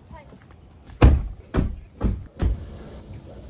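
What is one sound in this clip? A car door thumps shut.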